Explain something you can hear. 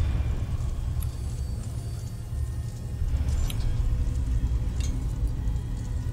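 A small metal car rattles along a track.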